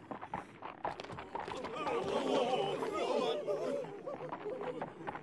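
A crowd of men murmurs and shouts.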